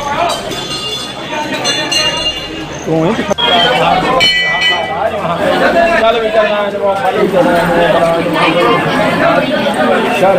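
A crowd of men and women chatters and calls out nearby.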